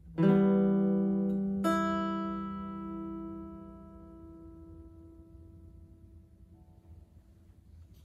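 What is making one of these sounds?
An electric guitar strums chords that ring out and slowly fade.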